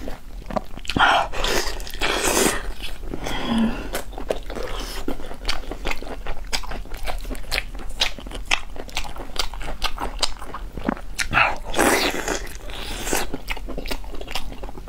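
Sticky meat squelches and tears in gloved hands close to a microphone.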